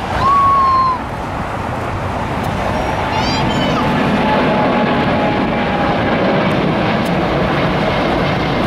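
A jet airliner's engines roar loudly during takeoff climb.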